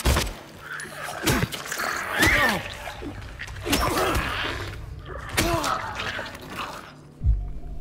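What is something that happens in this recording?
A creature screeches and snarls up close.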